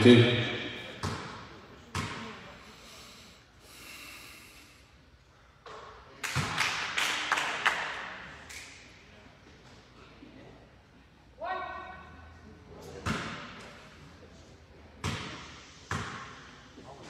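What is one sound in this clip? Basketballs bounce on a hardwood floor.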